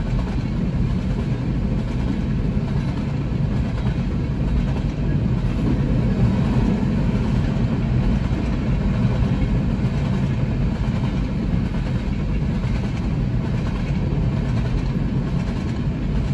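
A freight train rumbles and clatters steadily past nearby.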